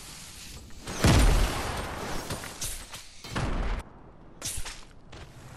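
Wind whooshes as a game character glides through the air.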